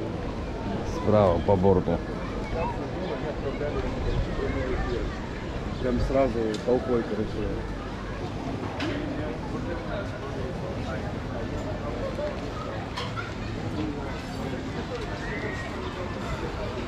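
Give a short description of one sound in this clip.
Men and women nearby chat and talk outdoors.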